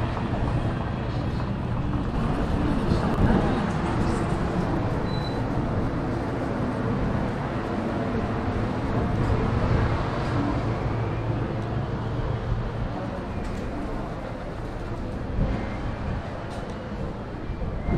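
Footsteps walk slowly over stone paving.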